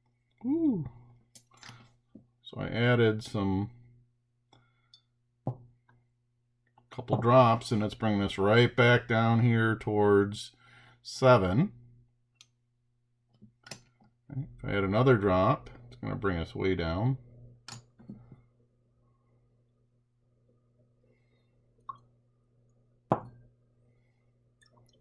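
A glass beaker knocks softly against a tabletop.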